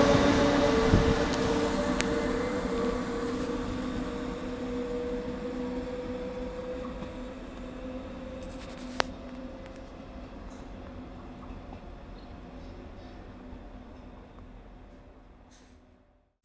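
A train's hum fades into the distance as it moves away.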